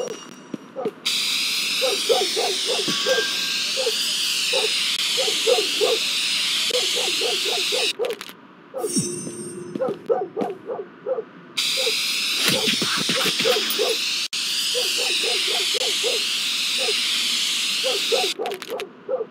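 A spray can hisses steadily.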